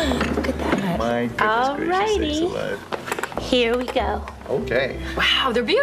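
A man laughs nearby.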